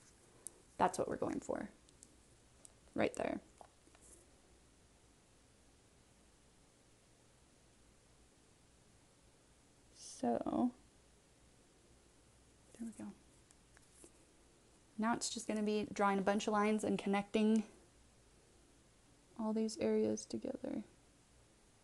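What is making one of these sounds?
A young woman speaks calmly, close to the microphone, in short bursts with pauses.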